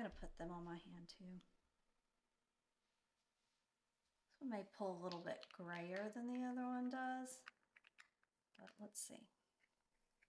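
A middle-aged woman speaks softly and closely into a microphone.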